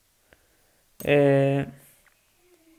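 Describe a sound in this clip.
A short, loud notification chime rings out.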